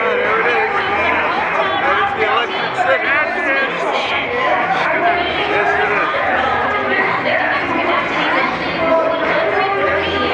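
A large crowd of people chatters and cheers outdoors.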